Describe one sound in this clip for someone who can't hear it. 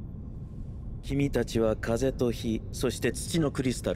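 A young man speaks calmly and smoothly.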